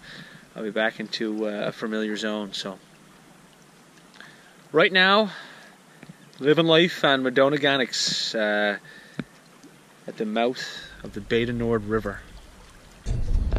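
A young man speaks calmly, close to the microphone.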